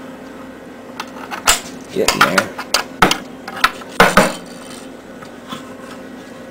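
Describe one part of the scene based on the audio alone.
A metal can creaks, pops and crumples as a press squeezes it.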